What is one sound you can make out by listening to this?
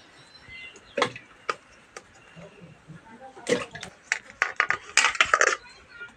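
Metal pots and utensils clink and knock.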